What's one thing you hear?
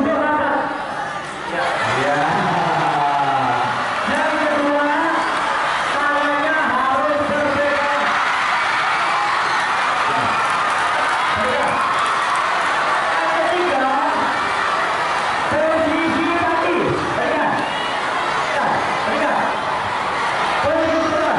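A man speaks with animation through a loudspeaker microphone.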